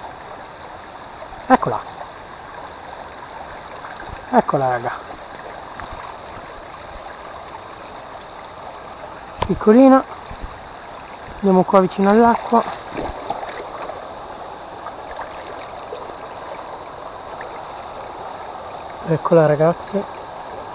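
A small stream trickles and splashes over rocks.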